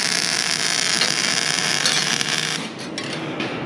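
An arc welder crackles and hisses up close.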